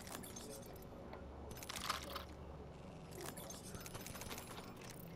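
Short game menu clicks and item pickup sounds come in bursts.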